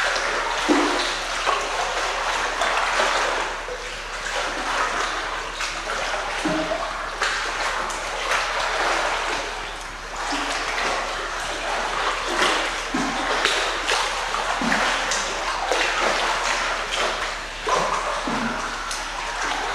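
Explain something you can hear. Water splashes as a child wades and paddles through a pool.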